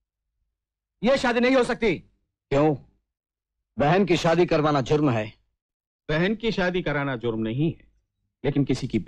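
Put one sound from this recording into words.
A man speaks loudly and forcefully, close by.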